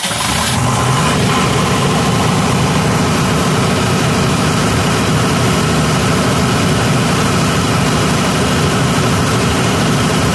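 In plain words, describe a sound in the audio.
A diesel generator engine runs with a loud, steady rumble close by.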